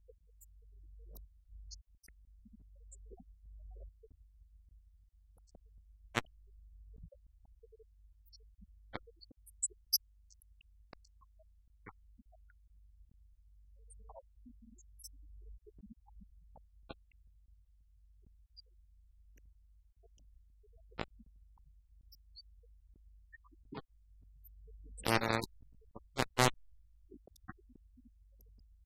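Keys tap now and then on laptop keyboards.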